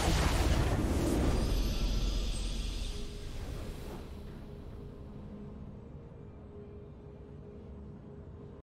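A triumphant fanfare plays and fades.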